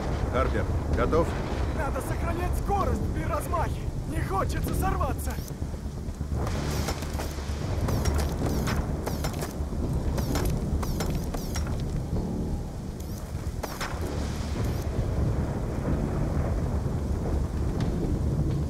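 A strong wind roars.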